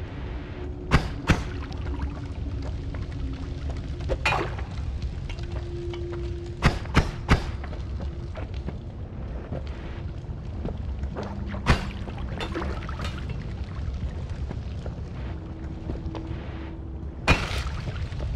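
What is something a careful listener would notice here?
A pickaxe strikes rock with sharp knocks now and then.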